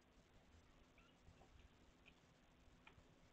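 A tiny kitten mews faintly.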